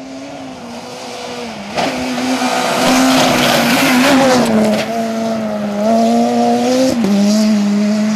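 Gravel sprays and crackles under a rally car's tyres.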